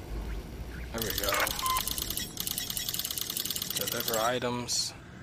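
Electronic interface beeps tick rapidly in a steady run.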